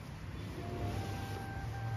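Hands press and pat down loose soil.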